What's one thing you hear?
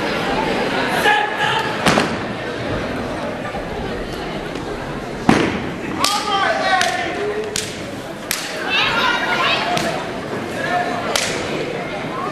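A young man shouts a chant.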